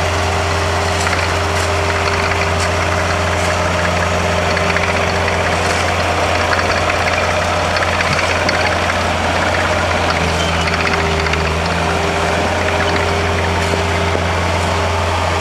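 Shovels scrape against snow and pavement.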